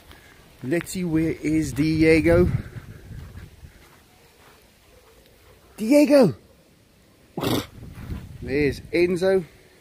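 A dog barks and yelps loudly close by.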